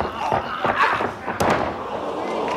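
A wrestler is thrown and slams onto a wrestling ring mat with a thud.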